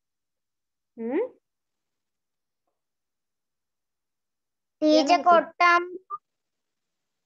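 A boy speaks over an online call.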